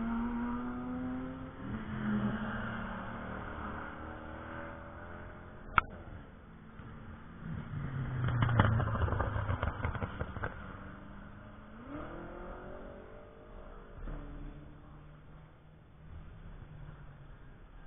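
Race car engines roar and shift gears as cars speed along a track.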